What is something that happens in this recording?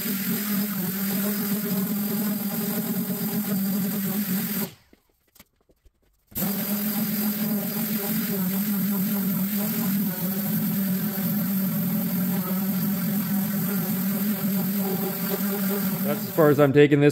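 An electric sander whirs steadily against sheet metal, stopping briefly and starting again.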